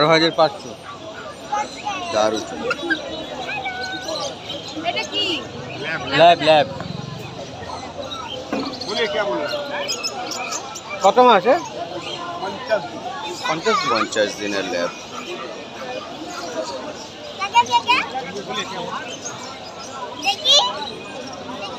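A crowd chatters in the background outdoors.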